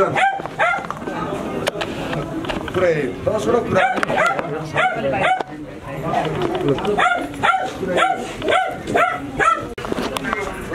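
A middle-aged man speaks loudly and with animation close by.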